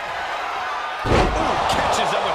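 A body slams heavily onto a wrestling ring mat.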